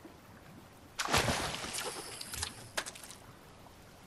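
Water splashes loudly as something drops into it.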